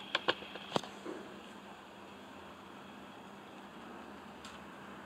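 Model train wheels click over the rail joints.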